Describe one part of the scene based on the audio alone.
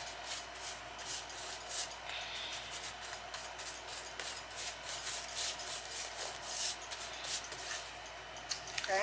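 A stiff brush swishes in quick strokes against a woven basket.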